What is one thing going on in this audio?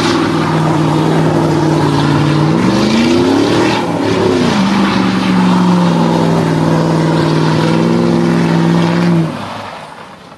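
Tyres squeal and screech on pavement.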